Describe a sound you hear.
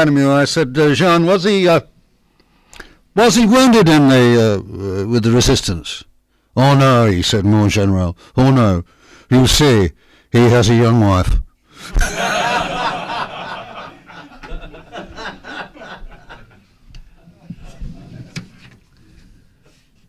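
An elderly man speaks steadily through a microphone in a large hall, at times pausing.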